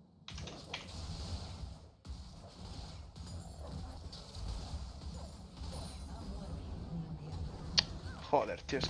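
A game character is hit with sharp impacts.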